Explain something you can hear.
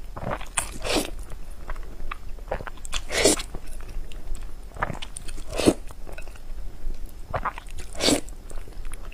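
A young woman chews wetly and smacks her lips close to a microphone.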